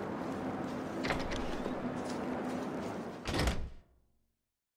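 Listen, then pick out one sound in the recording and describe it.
A heavy door clanks open.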